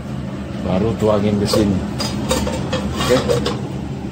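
A metal lid clanks on a pot.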